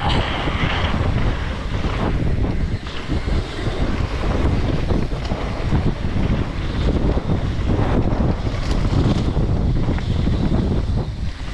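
Mountain bike tyres rumble over a dirt trail.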